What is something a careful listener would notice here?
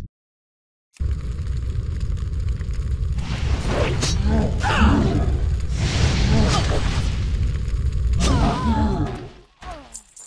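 Weapons clash and strike during a fight.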